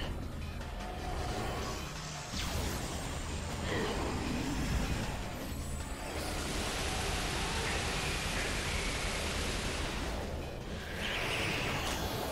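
An arm cannon fires bursts of energy shots.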